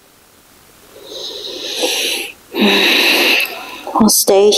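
A woman breathes in and out deeply and audibly.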